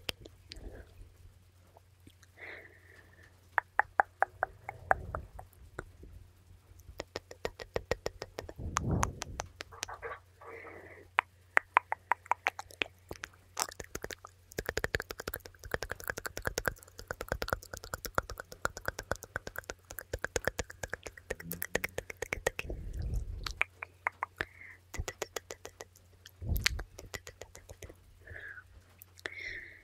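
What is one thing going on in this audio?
Fingernails tap and click rapidly near a microphone.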